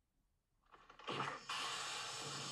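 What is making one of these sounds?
A sword swishes sharply through the air.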